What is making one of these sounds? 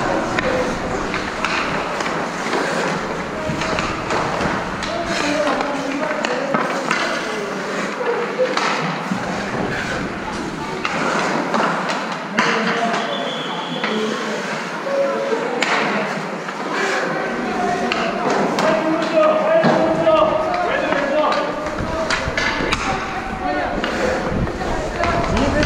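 Men talk and call out around a large echoing rink.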